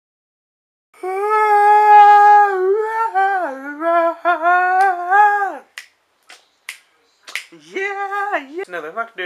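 A young man sings loudly and wailingly close to the microphone.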